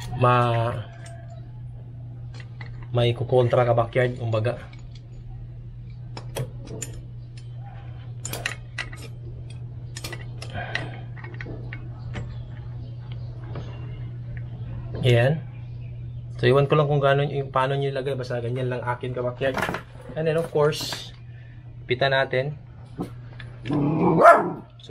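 A wrench clicks and scrapes against metal bolts.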